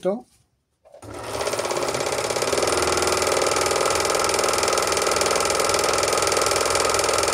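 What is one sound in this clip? A sewing machine whirs steadily as it stitches.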